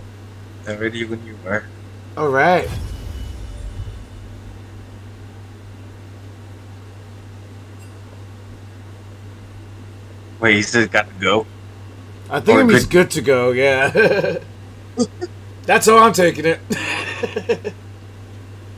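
A man talks casually in short bursts into a close microphone.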